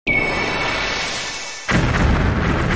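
A game creature bursts with a bright chiming flash.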